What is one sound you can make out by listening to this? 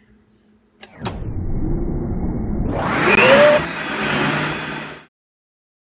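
A countertop blender whirs, blending fruit and ice.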